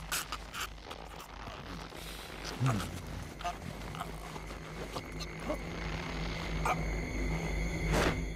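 A young man groans and gasps in pain.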